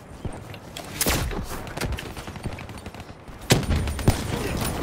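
Gunshots crack in sharp bursts.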